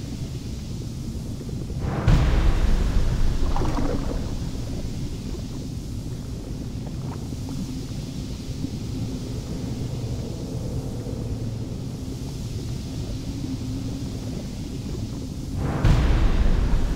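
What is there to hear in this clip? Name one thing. A cauldron bubbles and gurgles steadily.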